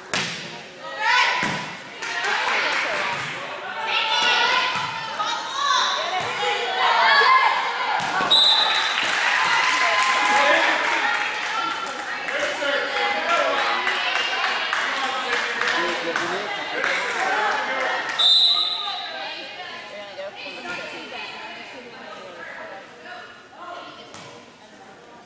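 Young girls shout and cheer, echoing in a large gym.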